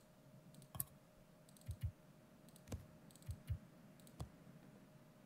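Soft interface clicks sound as inventory items are moved.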